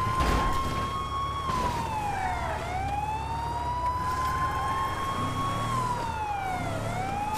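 A car engine rumbles as the car drives along.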